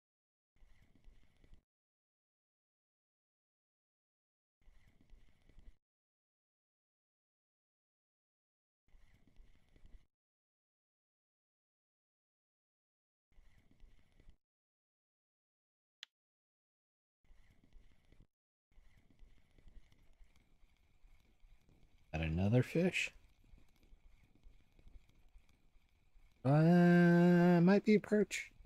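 A fishing reel clicks and whirs in short bursts.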